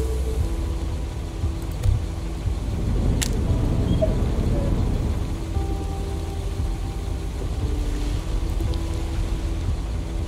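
Fire crackles and roars steadily.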